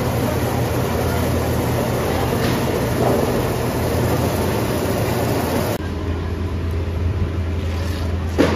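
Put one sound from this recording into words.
A machine hums and rumbles steadily nearby.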